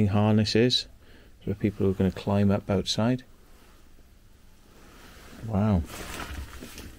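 A man speaks close by, calmly explaining.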